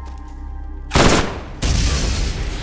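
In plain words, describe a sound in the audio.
A gun fires a loud blast.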